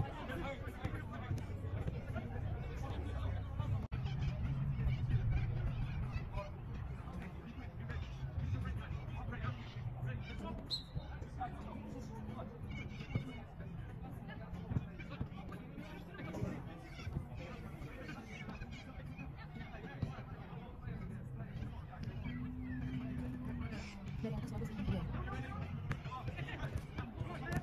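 Footballs thud as players kick them on grass.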